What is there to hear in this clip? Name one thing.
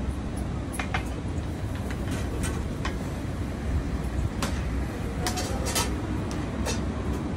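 Metal utensils clink against metal pans.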